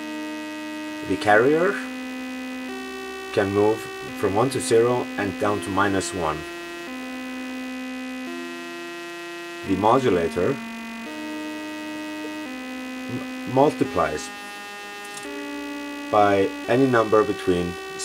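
A modular synthesizer makes bursts of warbling, pitch-bending electronic notes.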